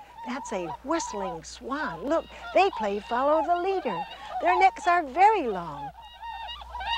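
Swans call loudly with whooping cries.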